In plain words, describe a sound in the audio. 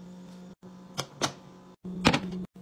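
A lid clicks onto a glass jug.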